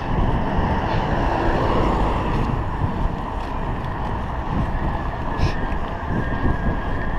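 Wind rushes loudly against the microphone while cycling along a road.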